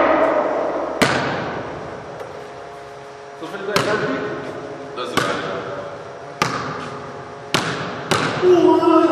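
A basketball bounces on a wooden floor, echoing loudly in a large hall.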